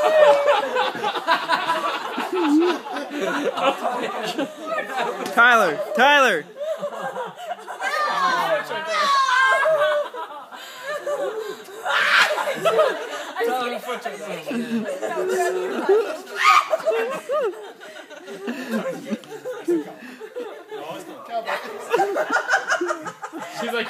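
A young man talks and laughs with animation.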